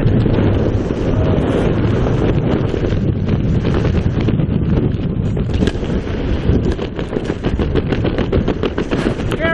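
Strong wind roars and buffets loudly during a freefall.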